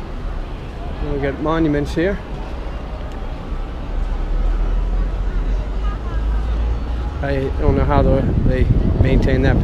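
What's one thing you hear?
A man talks nearby outdoors in wind.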